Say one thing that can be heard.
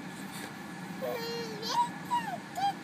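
A baby babbles and squeals close by in a high voice.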